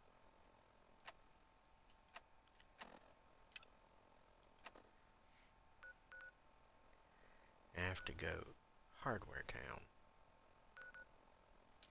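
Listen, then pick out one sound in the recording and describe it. Soft electronic clicks sound as menu items change.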